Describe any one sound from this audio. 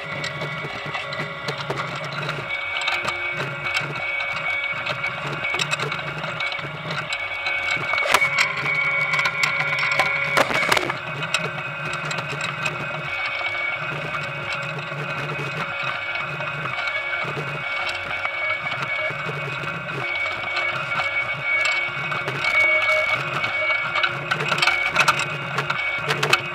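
Potatoes knock and tumble against each other on a moving sorting conveyor.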